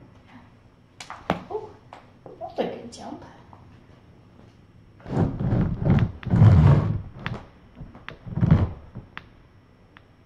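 Kittens scamper and thump across a hard floor.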